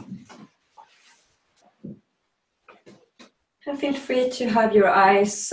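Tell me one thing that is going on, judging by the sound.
A middle-aged woman speaks calmly and clearly, close by.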